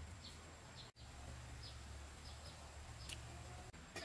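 Water bubbles and boils in a pot.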